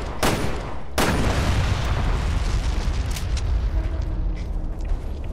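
A fire roars.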